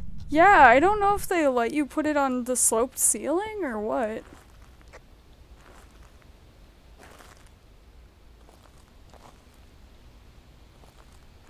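Footsteps tap softly on stone paving.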